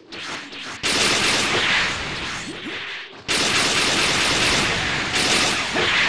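Energy blasts fire and burst with sharp bangs.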